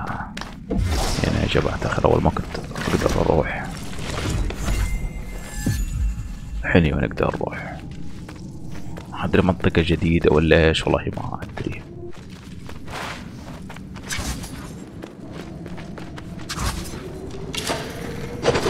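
Footsteps run across hard ground and wooden boards.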